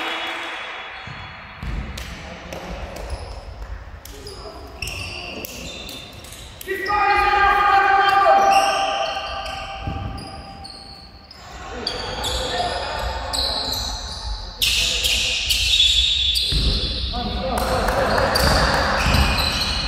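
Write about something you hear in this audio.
Young girls shout to each other across the court.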